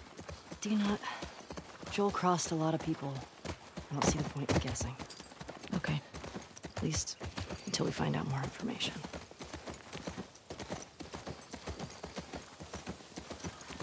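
Horse hooves clop slowly on a dirt trail.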